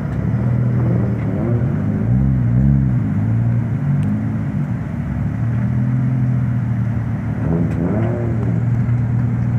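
A car engine revs up and down in short bursts.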